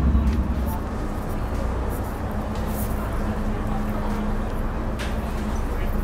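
A vehicle's engine rumbles low and steadily.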